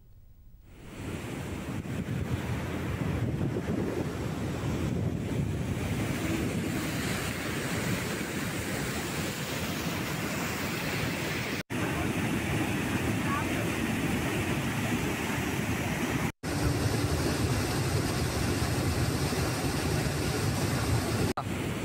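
Water rushes and churns loudly as it pours over a spillway.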